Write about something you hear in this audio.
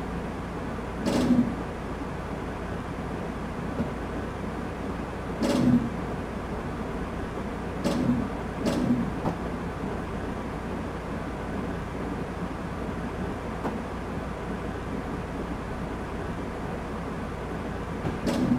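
A train engine rumbles steadily as the train rolls along the tracks.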